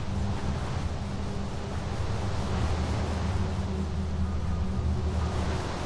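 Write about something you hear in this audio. Water rushes and splashes down a waterfall.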